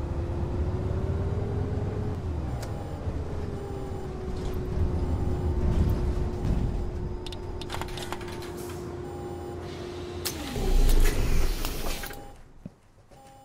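A city bus's diesel engine hums as the bus slows to a stop.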